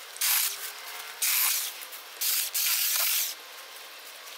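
Hedge shears snip and swish through leafy branches.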